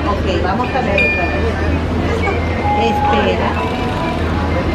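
An entry scanner beeps with a short electronic tone.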